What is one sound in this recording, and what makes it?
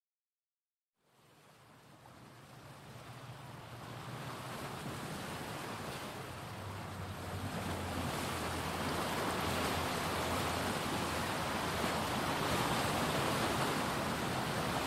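Waves wash onto a sandy shore, rising in roar.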